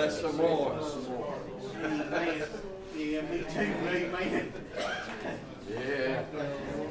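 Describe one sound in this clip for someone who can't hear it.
A man prays aloud in a calm, steady voice in a reverberant room.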